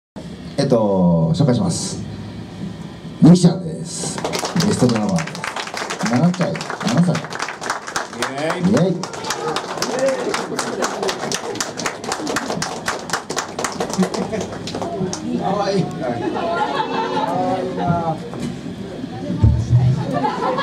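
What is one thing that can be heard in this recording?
A young man sings into a microphone over the band.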